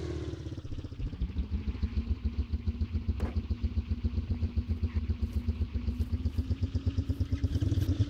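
A scooter engine idles with a fast, rough putter.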